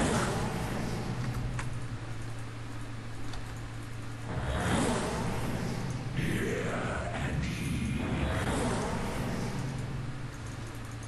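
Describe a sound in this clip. Video game sound effects whoosh and clash.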